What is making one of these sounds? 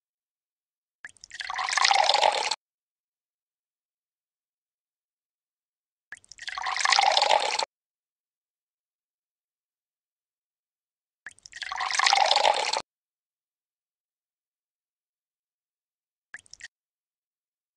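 Liquid pours and gurgles in short bursts.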